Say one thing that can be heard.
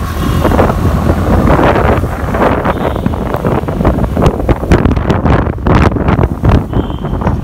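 Wind buffets loudly past the rider of a motorcycle.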